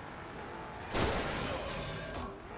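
A loud crash of metal bursts out.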